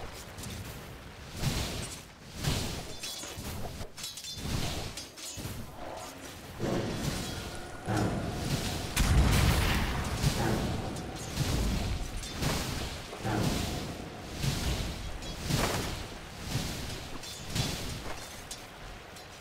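A man talks into a microphone with animation.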